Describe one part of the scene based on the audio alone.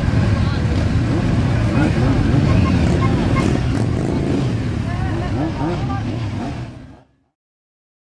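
A motorcycle engine rumbles close by.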